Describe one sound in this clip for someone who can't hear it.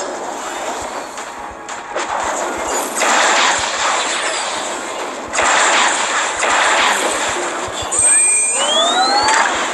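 Magic blasts whoosh and crackle in a fast fight.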